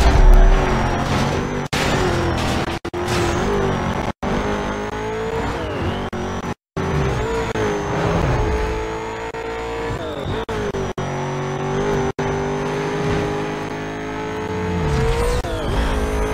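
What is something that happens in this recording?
A racing car engine roars at high revs, its pitch rising and dropping with gear changes.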